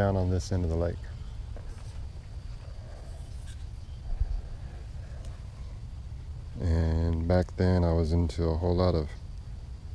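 A man speaks close by, calmly.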